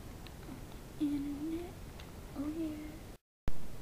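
A boy speaks briefly and calmly close by.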